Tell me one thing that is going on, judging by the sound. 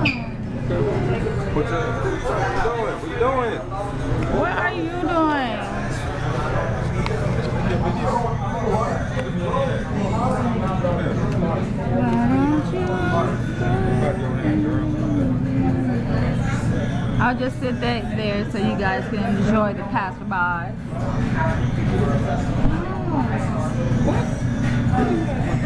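Several men and women talk with animation close by.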